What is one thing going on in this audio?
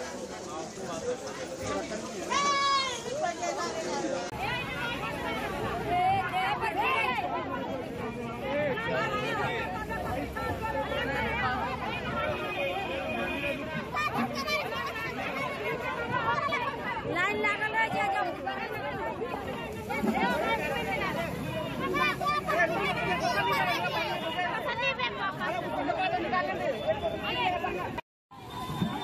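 A crowd of men and women shouts and argues loudly close by.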